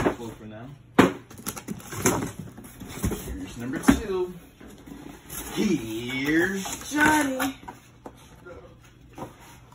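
Cardboard boxes rustle and scrape as they are handled.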